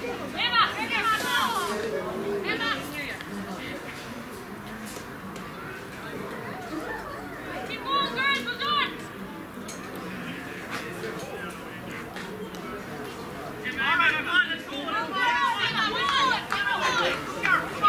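Young women shout and call out to each other across an open field, some way off.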